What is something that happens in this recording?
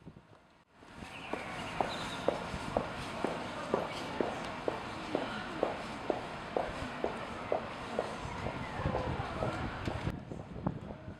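Footsteps tap steadily on cobblestones close by.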